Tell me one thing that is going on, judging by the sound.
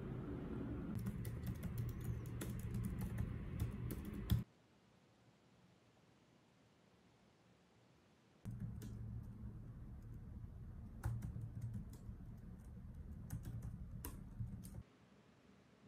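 Fingers tap quickly on a laptop keyboard.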